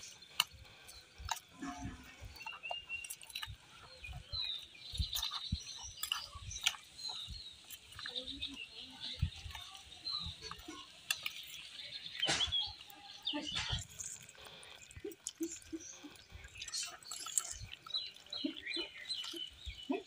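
A metal spoon scrapes and clinks against a steel bowl.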